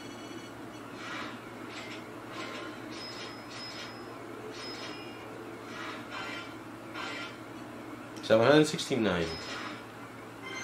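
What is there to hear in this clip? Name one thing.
Electronic chimes ring out in quick bursts as a score tallies up.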